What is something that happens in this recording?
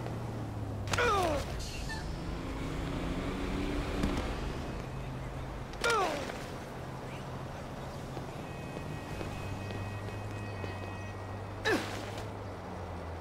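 A body thuds onto pavement.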